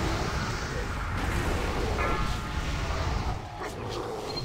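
Magic spells crackle and whoosh in a busy battle.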